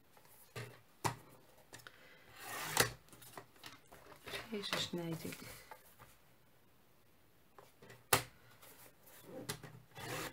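A paper trimmer blade slides and clicks down the rail.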